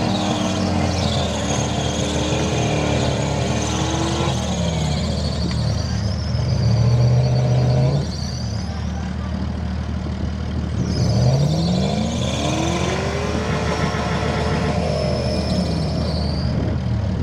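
A truck engine revs hard, rising and falling.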